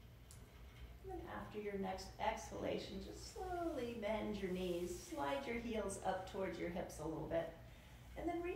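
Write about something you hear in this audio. A woman speaks calmly and slowly nearby.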